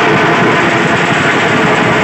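A man blows a shrill whistle.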